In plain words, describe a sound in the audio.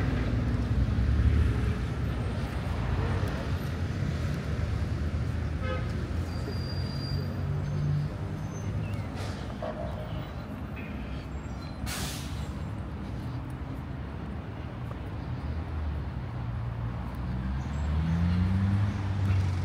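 Traffic hums steadily along a nearby street outdoors.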